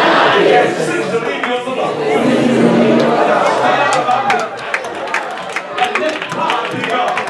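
A crowd of men and women chatter at once in a large echoing hall.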